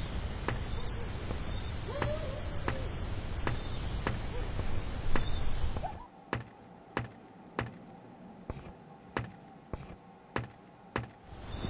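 Footsteps thud at an even walking pace.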